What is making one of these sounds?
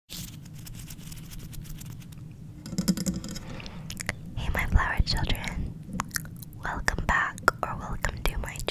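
Fingers rub and tap against a microphone close up.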